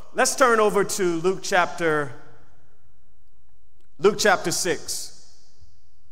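A man speaks calmly through a microphone in short phrases.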